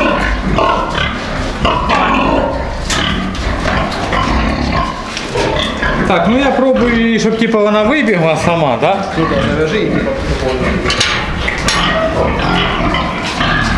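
Pigs grunt and snort close by.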